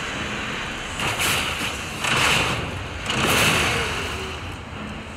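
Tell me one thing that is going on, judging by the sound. A heavy blade strikes and slashes.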